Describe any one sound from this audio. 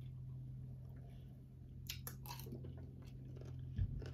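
A woman sips a drink.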